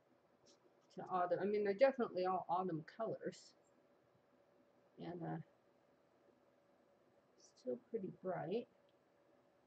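A woman talks calmly into a nearby microphone, in short bursts.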